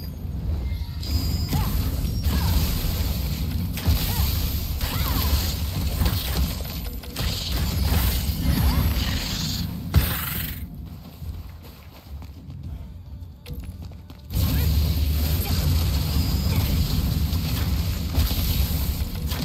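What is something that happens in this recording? Magic spells whoosh and burst with fiery crackles.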